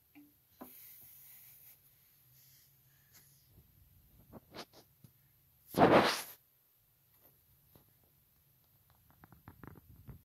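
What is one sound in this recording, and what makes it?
A spinning record crackles and ticks faintly.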